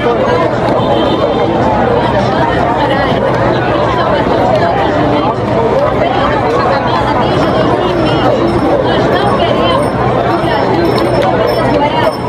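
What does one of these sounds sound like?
A woman speaks passionately into a microphone through a loudspeaker.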